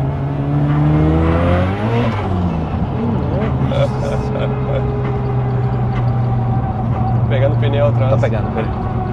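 A car engine revs up and shifts gears inside the cabin.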